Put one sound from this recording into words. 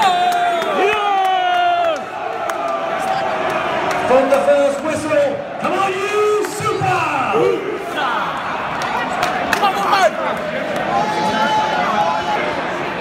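A large crowd of men sings and chants loudly outdoors.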